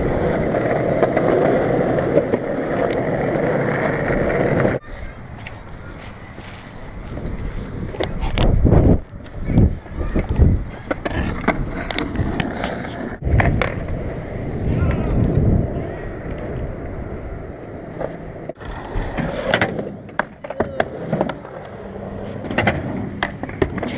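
Skateboard wheels roll and rumble over rough pavement.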